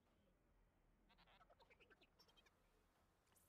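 A small robot beeps and chirps.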